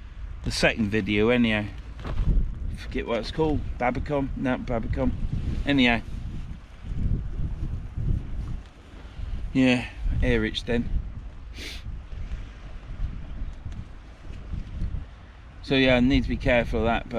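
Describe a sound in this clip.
Wind buffets and flaps a tent outdoors.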